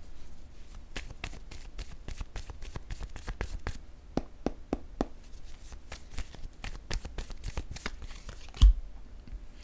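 A deck of playing cards is shuffled by hand with quick flicking clicks.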